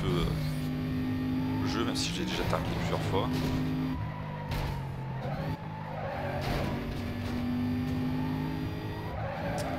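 A sports car engine roars at high speed, shifting pitch as it changes gear.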